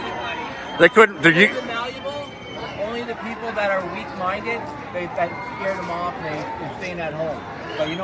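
A middle-aged man shouts angrily close by.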